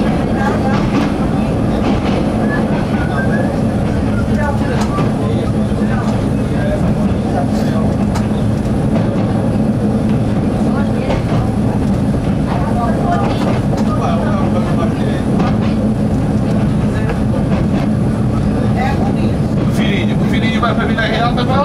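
Train wheels click and squeal on the track.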